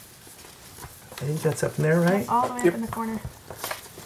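Playing cards are shuffled and slide against each other.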